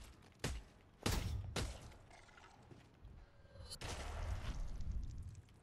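Heavy blows thud into flesh with wet splatters.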